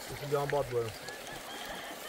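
Water splashes in a shallow stream.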